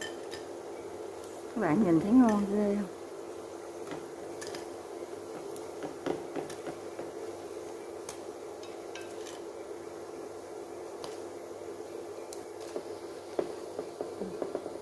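Oil sizzles and crackles steadily in a frying pan.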